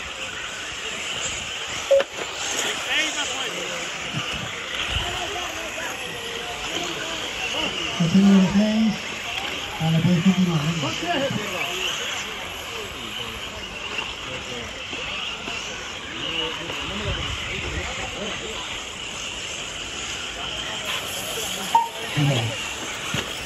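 Small model car engines buzz and whine at high pitch outdoors.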